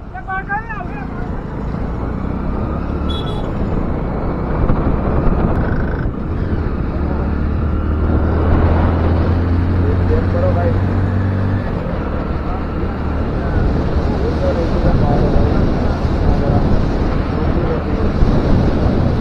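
Wind rushes past loudly and grows stronger as the motorcycle speeds up on an open road.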